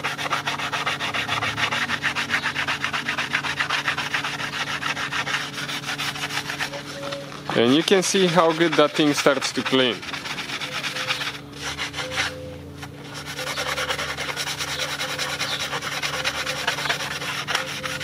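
An abrasive pad rapidly scrubs back and forth on metal.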